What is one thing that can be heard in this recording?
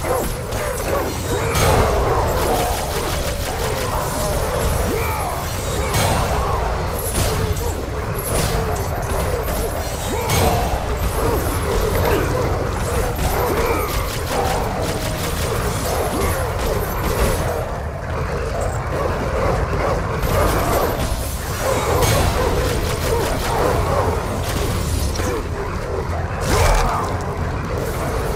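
Heavy blows thud and crunch against creatures.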